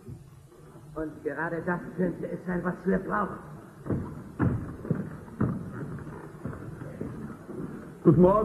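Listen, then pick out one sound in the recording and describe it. A man sings loudly in a large echoing hall.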